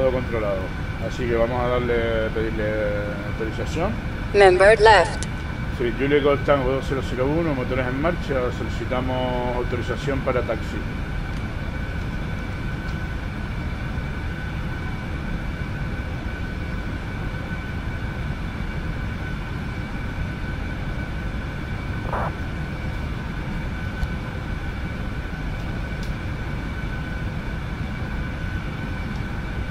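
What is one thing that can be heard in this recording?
A jet engine whines steadily at idle.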